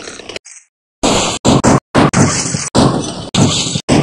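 A hammer knocks sharply several times.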